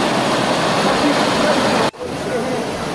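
Water rushes and splashes loudly over rocks.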